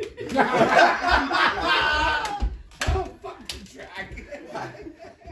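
Several men talk and laugh together in lively conversation.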